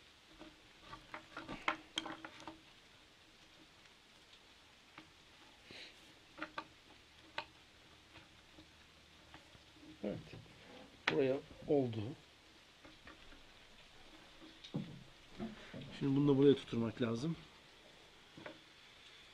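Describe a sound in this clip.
Small pieces of wood click and tap together close by.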